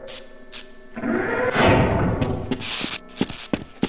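A heavy metal door slides open with a rumbling hiss.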